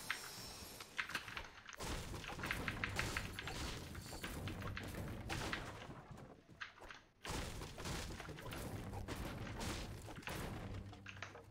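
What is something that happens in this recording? A pickaxe strikes wooden furniture with sharp knocks.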